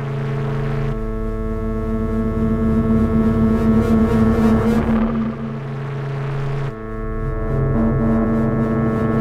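Electronic synthesizer tones drone and shift in layered chords.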